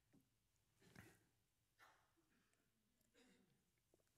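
A man sips water from a glass.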